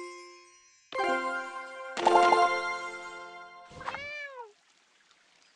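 A bright game chime rings out as a task is completed.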